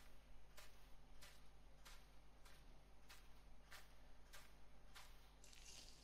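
Footsteps fall on the ground at a walking pace.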